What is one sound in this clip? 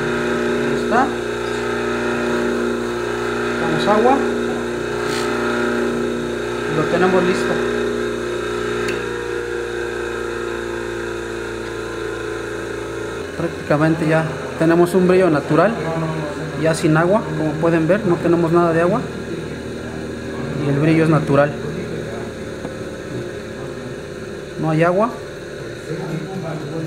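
A polishing wheel motor whirs steadily.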